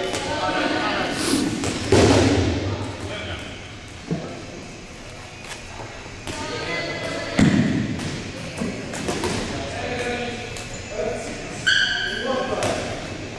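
Balls thud and bounce on a wooden floor in a large echoing hall.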